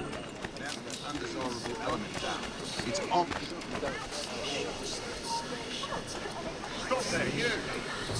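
Footsteps patter quickly on cobblestones.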